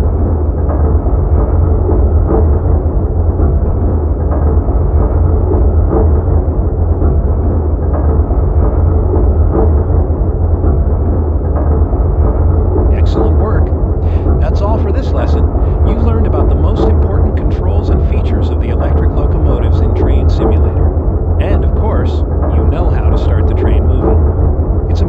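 An electric train hums and rumbles steadily along the rails.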